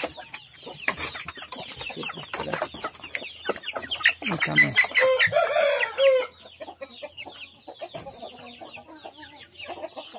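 Many chickens cheep and chirp nearby.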